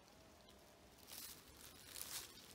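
Footsteps crunch through dry fallen leaves.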